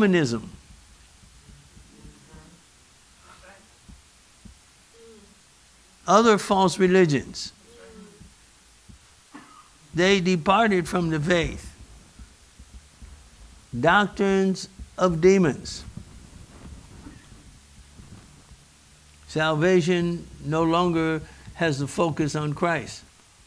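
A man preaches with animation into a microphone, in bursts with long pauses, in a room with some echo.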